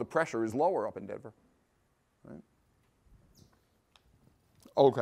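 A middle-aged man lectures with animation through a clip-on microphone in a quiet room.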